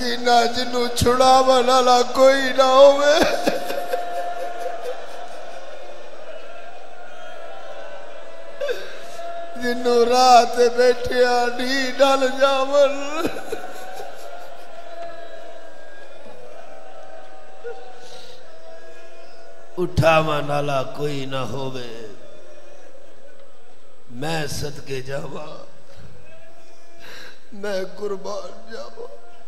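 A middle-aged man chants mournfully into a microphone, heard through loudspeakers.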